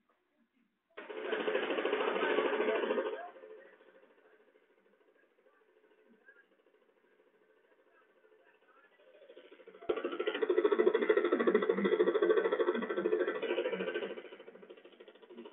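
A helicopter's engine and rotor whir through a small loudspeaker.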